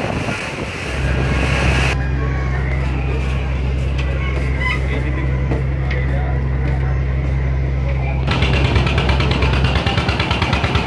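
A river launch's diesel engine drones.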